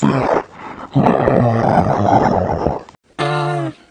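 A man shouts angrily in a growling voice.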